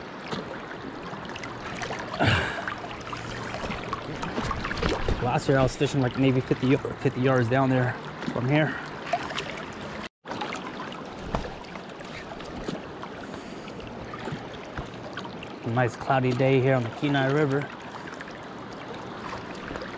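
A river flows and rushes steadily nearby.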